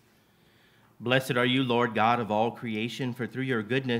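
A man speaks calmly and clearly through a microphone in a large, echoing hall.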